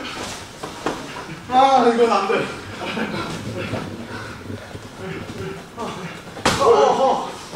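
Padded strikes thud against a training pad.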